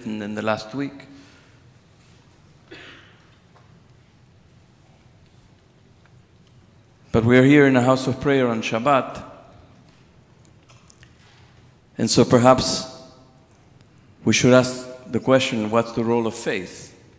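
A man chants in a melodic voice through a microphone in a large echoing hall.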